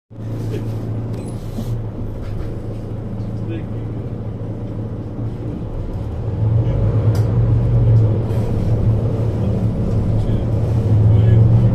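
A vehicle engine hums steadily from inside, growing louder as it pulls away.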